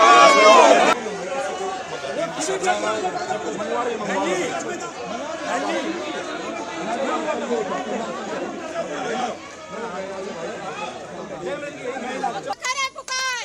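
Men talk loudly among a milling crowd outdoors.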